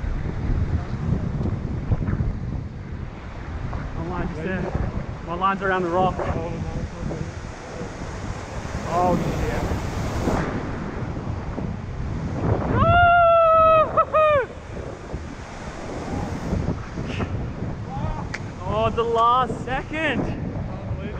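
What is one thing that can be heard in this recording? Ocean waves crash and wash against rocks.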